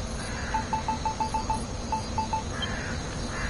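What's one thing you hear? Short electronic menu beeps tick in quick succession.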